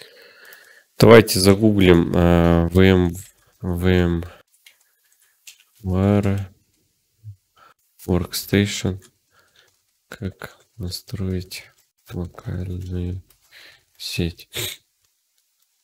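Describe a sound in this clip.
A young man speaks calmly and close to a microphone, in short bursts.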